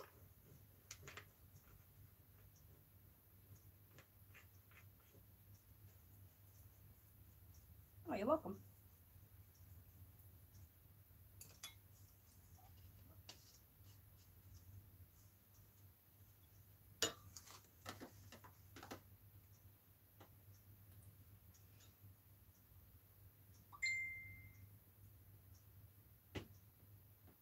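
Small objects tap and clink on a table now and then.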